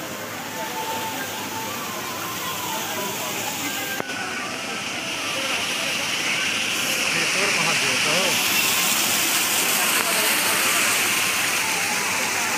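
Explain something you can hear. Water splashes and gushes steadily down a stone wall.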